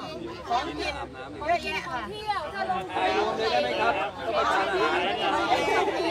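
Middle-aged women talk with animation close by, outdoors.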